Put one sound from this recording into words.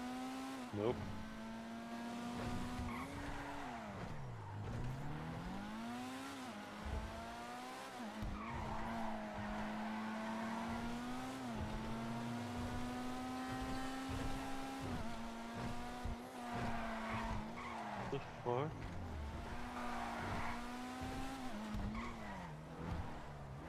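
Tyres screech on the road.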